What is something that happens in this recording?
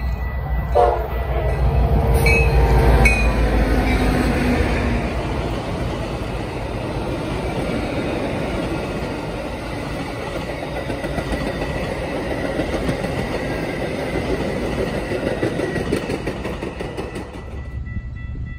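A passenger train rumbles past, its wheels clattering on the rails.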